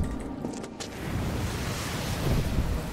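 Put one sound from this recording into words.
A cloud of smoke bursts out with a hissing rumble.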